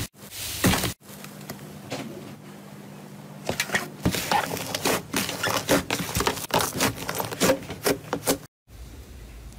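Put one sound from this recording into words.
Soft slime squelches and pops as hands squeeze it.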